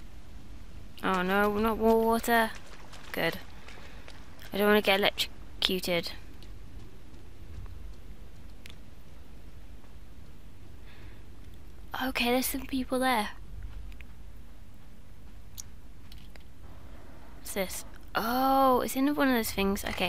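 A young woman speaks into a headset microphone, talking with animation in short bursts.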